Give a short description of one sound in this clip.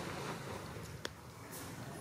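Dry leaves rustle as a monkey moves through the undergrowth.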